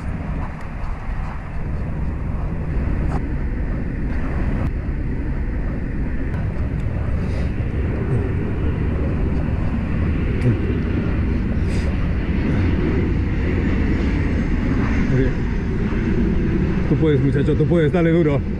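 Traffic hums steadily on a nearby road.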